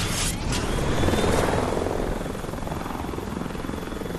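Helicopter rotors whir overhead.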